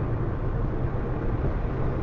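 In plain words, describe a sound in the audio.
A large truck passes close by with a loud rush.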